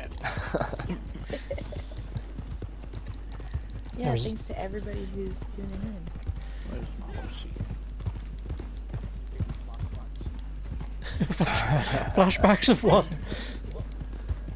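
A young woman speaks casually into a close microphone.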